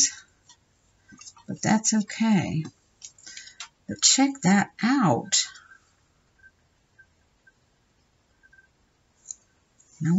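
Paper cutouts rustle softly between fingers.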